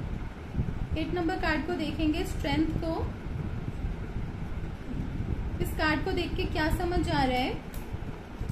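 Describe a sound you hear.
A woman speaks calmly and close by, in two short phrases.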